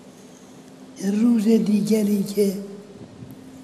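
An elderly man chants into a microphone.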